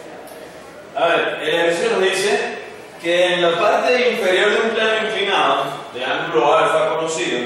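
A young man lectures clearly.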